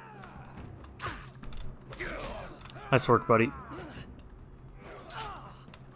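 Swords and shields clash in a fight.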